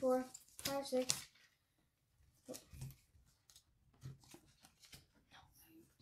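Playing cards tap softly onto a table.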